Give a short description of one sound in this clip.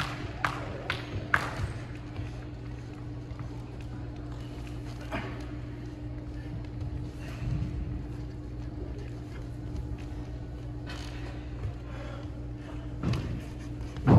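Sneakers squeak and thud on a hard floor in an echoing hall.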